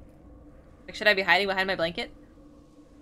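A young woman speaks briefly through a close microphone.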